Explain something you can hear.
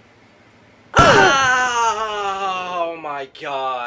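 A young man exclaims loudly close by.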